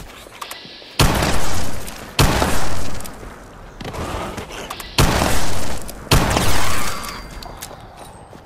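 Loud gunshots fire in heavy bursts.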